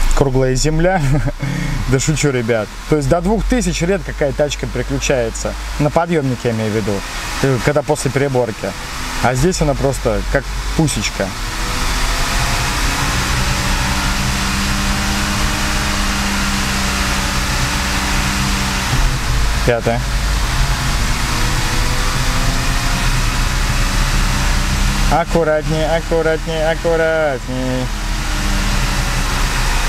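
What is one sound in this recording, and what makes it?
A car engine hums steadily while driving.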